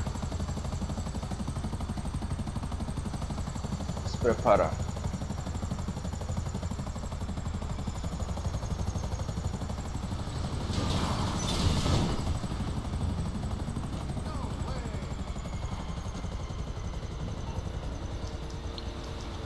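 A helicopter's rotor drones steadily.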